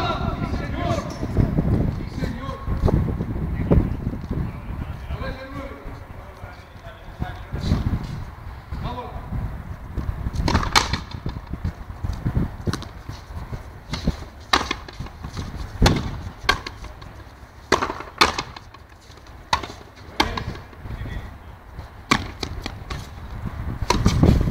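Rackets strike a ball with sharp smacks that echo around a large hall.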